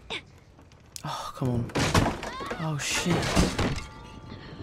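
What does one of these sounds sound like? A young girl groans in pain after falling onto wooden boards.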